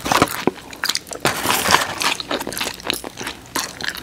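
A man chews food loudly close to a microphone.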